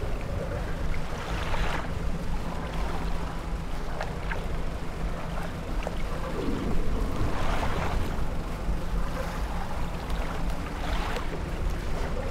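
Waves wash against a boat's hull in swells.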